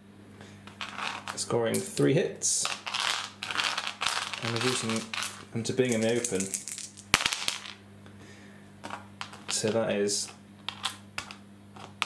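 Dice rattle in a hand and clatter onto a table.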